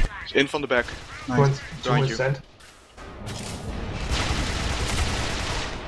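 A gun fires in short bursts.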